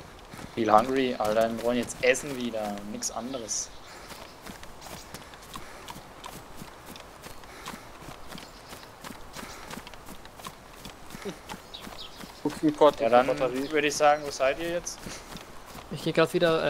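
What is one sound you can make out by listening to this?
Footsteps crunch through grass and gravel.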